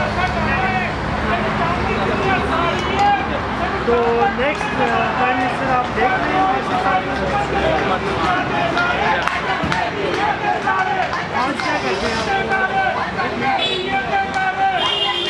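Several men talk and chatter at once close by, outdoors.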